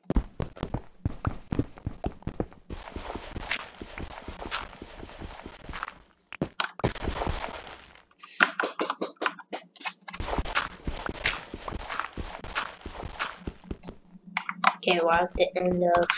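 Rapid crunching and tapping of digging through stone and dirt.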